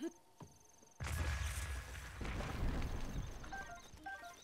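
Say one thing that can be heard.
A magical blast crackles and booms.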